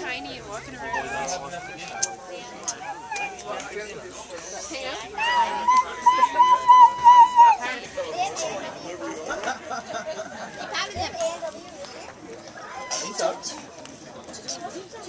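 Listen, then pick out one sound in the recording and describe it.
A woman talks and coos nearby.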